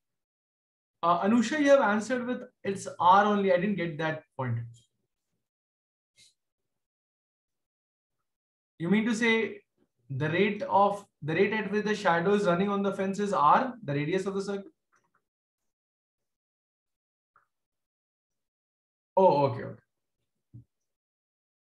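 A man speaks calmly through a microphone, explaining in pauses.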